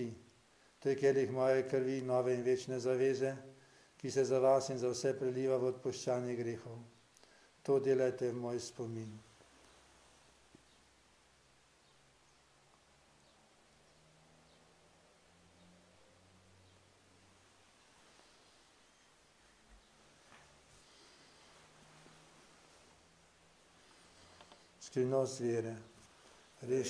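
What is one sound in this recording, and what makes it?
An elderly man chants in a sung, steady voice through a microphone in a reverberant room.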